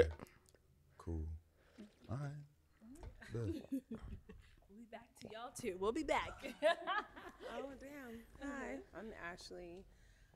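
Women talk and laugh with animation through microphones.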